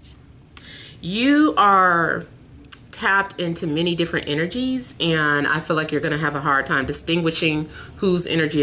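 A woman speaks calmly and closely to a microphone.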